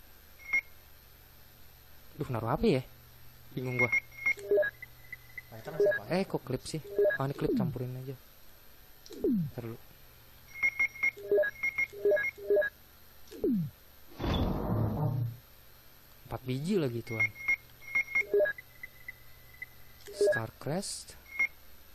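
Short electronic beeps chirp quickly as a game menu cursor moves.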